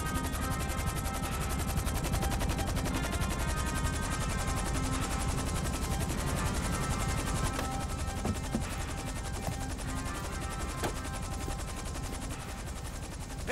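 A helicopter's rotor drones loudly and then winds down.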